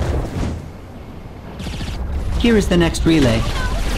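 A laser beam hums with a low rumble.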